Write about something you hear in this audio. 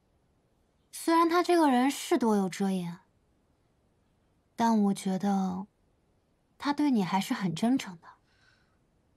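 A young woman speaks softly and calmly, close by.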